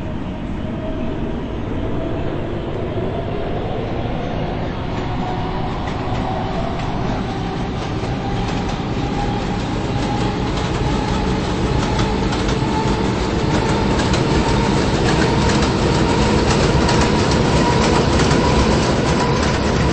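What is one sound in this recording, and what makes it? A train's electric motor whines and rises in pitch as the train speeds up.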